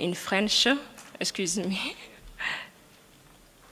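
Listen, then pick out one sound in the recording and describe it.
A woman laughs briefly into a microphone.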